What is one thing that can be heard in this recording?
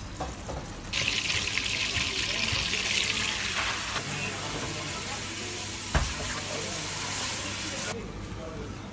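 Hot oil sizzles and crackles loudly in a pan.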